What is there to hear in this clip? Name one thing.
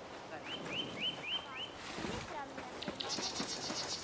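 Footsteps run across sand.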